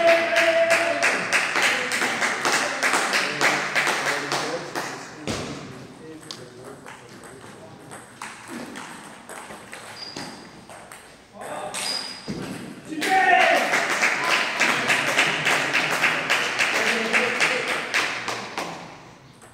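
Table tennis balls click rapidly against paddles and tables in a large echoing hall.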